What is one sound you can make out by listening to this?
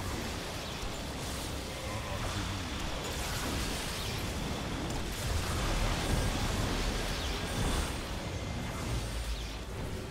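Laser beams buzz and crackle as they fire steadily.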